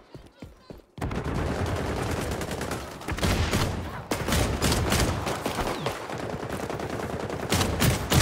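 Rifle shots fire in short bursts.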